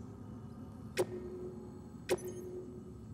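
Menu clicks sound sharply.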